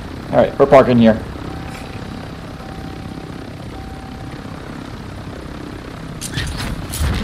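A helicopter engine drones steadily with thudding rotor blades.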